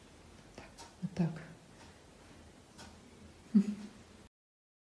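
A small kitten mews softly.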